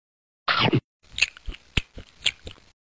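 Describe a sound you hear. Crunchy chewing sounds come in short bursts.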